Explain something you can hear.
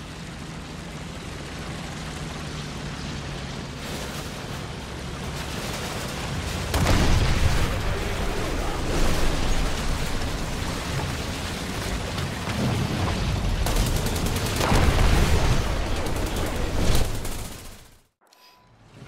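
A tank engine rumbles and tracks clatter.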